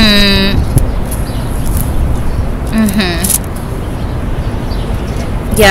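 A young woman speaks briefly and softly close to the microphone.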